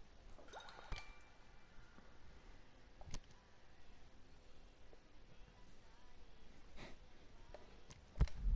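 Short electronic menu clicks and chimes sound now and then.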